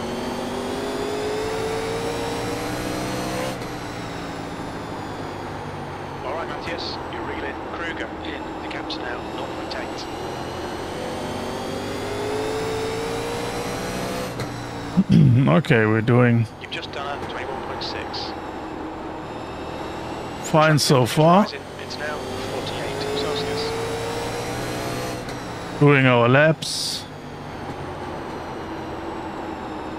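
A race car engine roars steadily, rising and falling in pitch through gear changes.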